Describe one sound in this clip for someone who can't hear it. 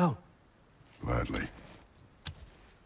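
A deep-voiced man speaks a short word gruffly.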